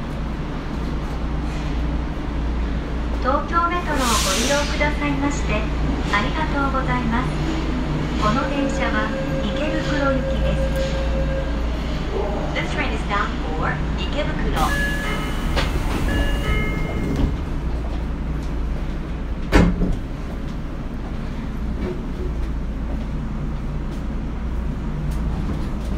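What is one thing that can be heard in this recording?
A stopped subway train hums steadily in an echoing underground station.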